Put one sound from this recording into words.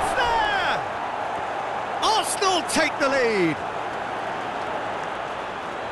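A stadium crowd cheers loudly for a goal.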